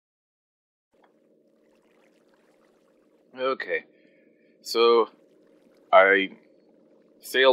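Water flows with a steady low gurgle.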